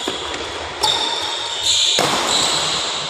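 A racket hits a shuttlecock with sharp smacks in an echoing hall.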